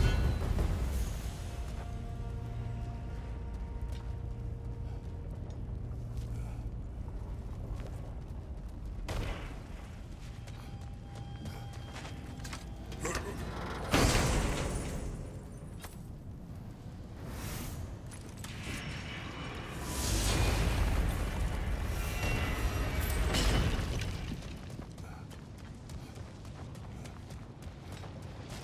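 Heavy footsteps crunch on stone.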